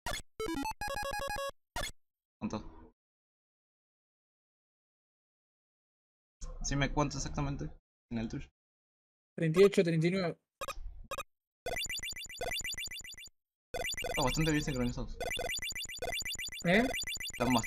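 Electronic game blips and chirps sound in short, quick bursts.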